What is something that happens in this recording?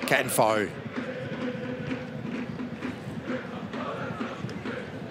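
A large stadium crowd murmurs and chants steadily outdoors.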